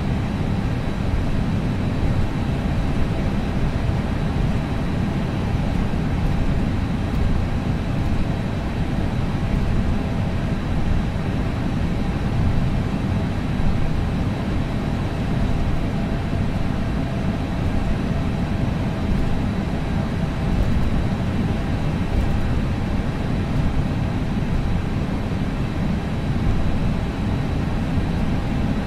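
Jet engines hum steadily as an airliner taxis.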